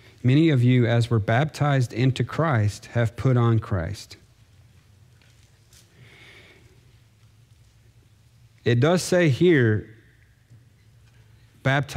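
A man speaks calmly into a microphone, reading out with pauses.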